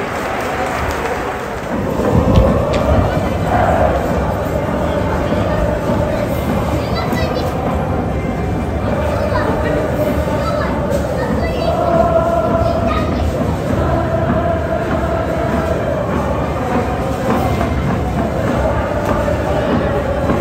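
A huge stadium crowd sings a chant in unison, echoing loudly outdoors.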